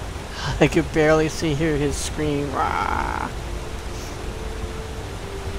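A waterfall rushes nearby.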